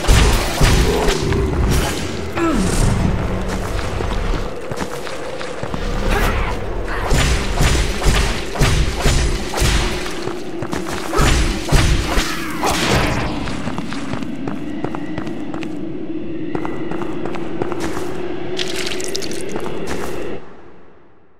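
A steady, low drone of music plays.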